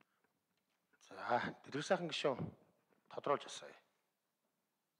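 A middle-aged man speaks calmly through a microphone in a large room.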